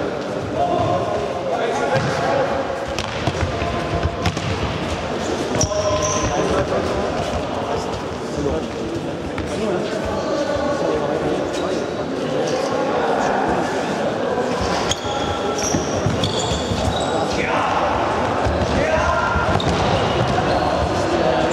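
Young men shout and call to each other across an echoing hall.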